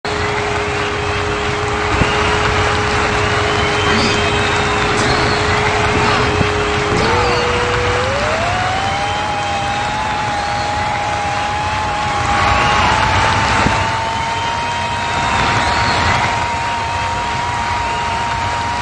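A racing car engine idles with a steady hum, then revs up and drones at high speed.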